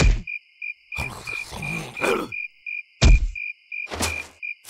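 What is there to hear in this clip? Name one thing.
A small cartoon creature babbles and grunts in a squeaky, strained voice.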